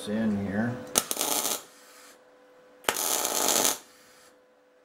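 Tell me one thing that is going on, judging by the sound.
An electric welder crackles and hisses in short bursts.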